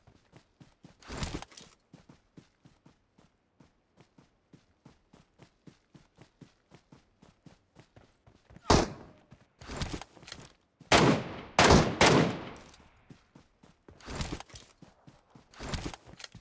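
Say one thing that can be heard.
Rifle shots crack loudly with a ringing echo.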